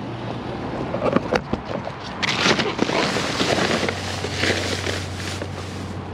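Plastic bags and cardboard rustle and crinkle as a hand digs through trash.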